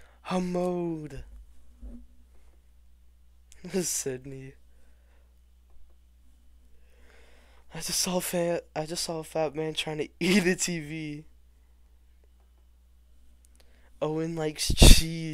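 A young man reads out in short phrases close to a microphone.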